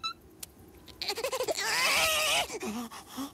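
A cartoon creature lets out a long, wavering squealing cry.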